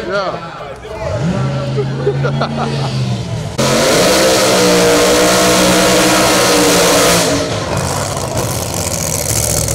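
A race car engine roars loudly.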